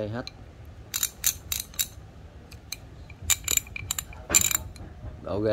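A ratchet wrench clicks rapidly as it is turned.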